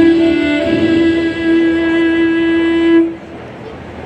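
A violin plays a long held note and then stops.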